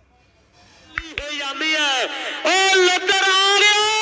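A man shouts loudly outdoors.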